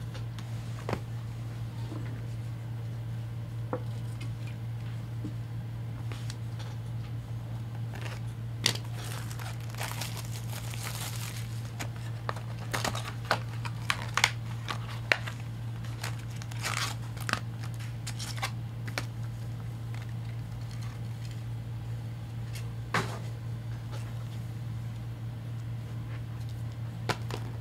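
Cardboard and cards rustle and tap as hands handle them.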